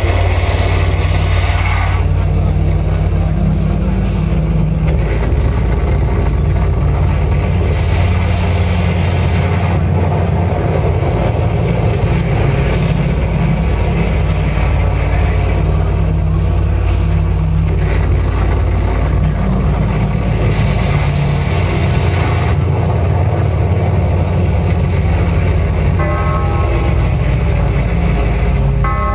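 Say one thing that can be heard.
Drums pound rapidly.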